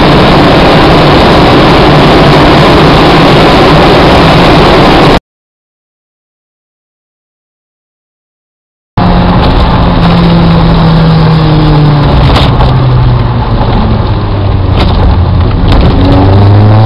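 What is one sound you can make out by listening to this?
Tyres rumble loudly on the road.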